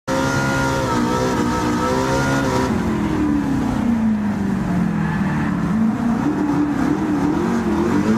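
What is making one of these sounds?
Tyres hum and rumble on the track.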